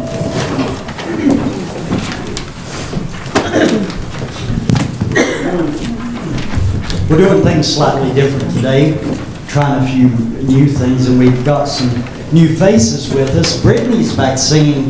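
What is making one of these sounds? A man speaks through a microphone in a large echoing room.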